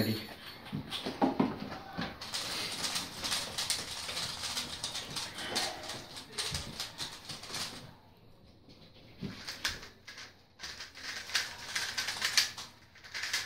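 Plastic puzzle cubes click and rattle rapidly as they are twisted.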